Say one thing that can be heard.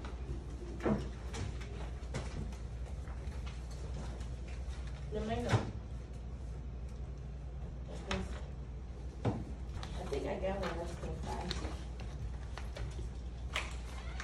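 Pencils scratch on paper.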